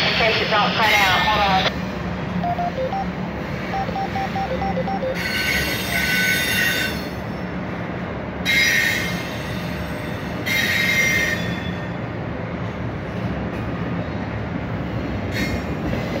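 A train rumbles and clatters steadily past nearby.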